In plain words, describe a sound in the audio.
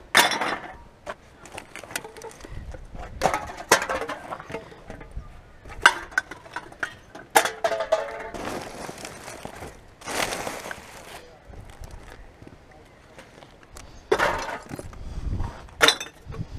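Plastic bags and wrappers rustle and crinkle as gloved hands sort through rubbish.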